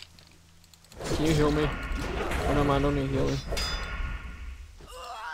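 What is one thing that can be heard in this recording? Weapons clash in a fight.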